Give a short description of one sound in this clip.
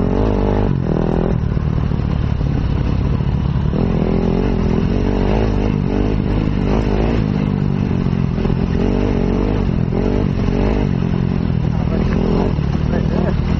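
A dirt bike engine roars up close, revving up and down.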